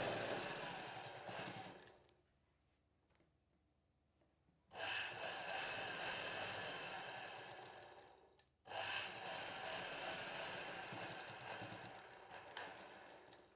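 A sewing machine runs in short bursts of rapid stitching.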